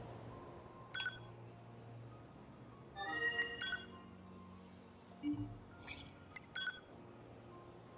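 Short electronic chimes sound as menu choices are made.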